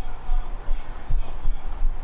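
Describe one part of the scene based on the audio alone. Sharp game fight sound effects clatter.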